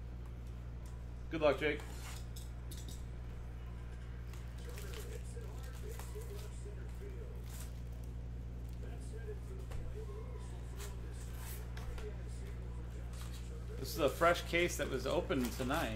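Cardboard packaging rustles and scrapes under hands.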